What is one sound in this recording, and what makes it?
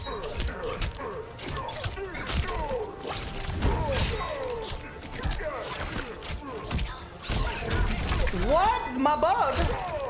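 Punches and kicks thud and crack in quick bursts.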